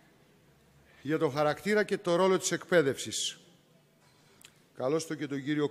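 A man speaks calmly into a microphone over a loudspeaker, in a large echoing hall.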